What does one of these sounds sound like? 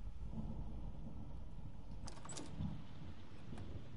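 A door handle turns and clicks.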